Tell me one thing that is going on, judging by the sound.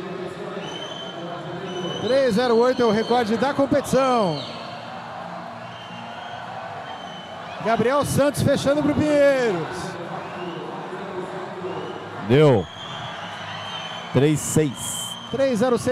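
Swimmers splash through water.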